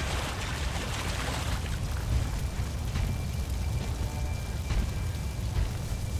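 Water splashes as someone wades through a pond.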